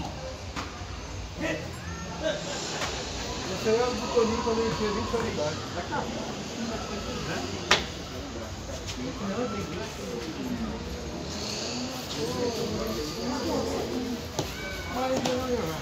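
Men talk nearby in relaxed voices.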